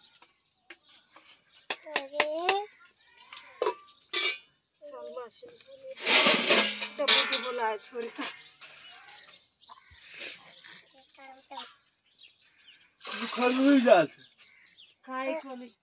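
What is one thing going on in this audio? Metal dishes clink and clatter.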